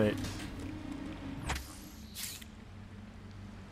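A soft electronic whoosh sounds once.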